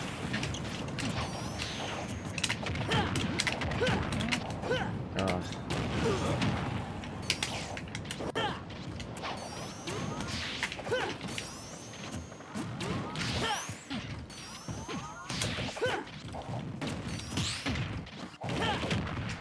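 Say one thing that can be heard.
Video game punches and blasts crack and whoosh in quick bursts.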